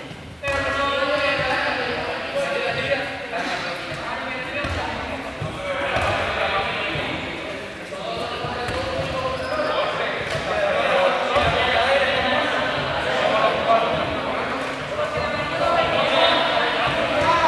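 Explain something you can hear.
Many children chatter and shout in a large echoing hall.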